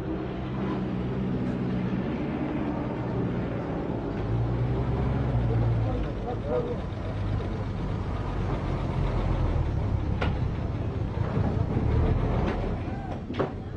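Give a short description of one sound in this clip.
A car engine rumbles low as the car rolls slowly.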